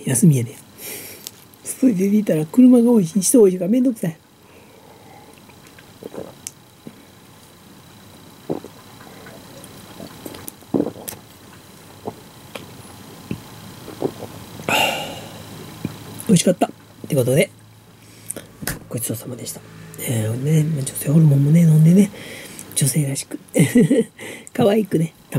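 A middle-aged woman laughs.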